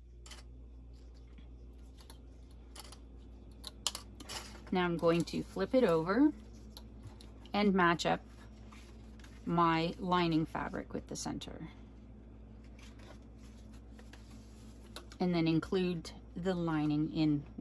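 Small plastic clips click as they are snapped onto fabric.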